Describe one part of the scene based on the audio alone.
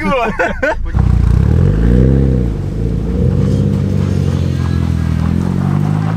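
A car engine rumbles and revs loudly close by, its pitch rising and falling.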